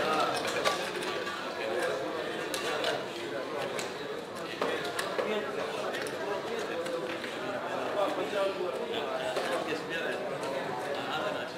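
Plastic chips clack and click together as they are slid and stacked.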